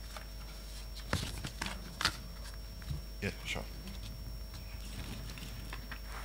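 Paper rustles and taps near a microphone.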